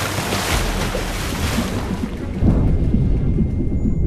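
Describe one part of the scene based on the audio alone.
Debris crashes and rumbles in an explosion.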